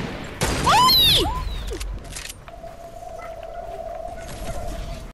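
Footsteps thud on wooden planks in a video game.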